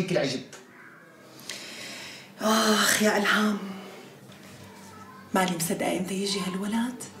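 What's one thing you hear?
A woman speaks with emotion close by.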